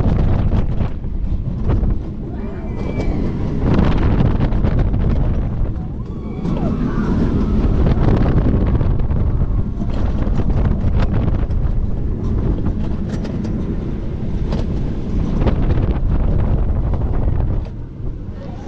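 Wind roars loudly past a fast-moving roller coaster.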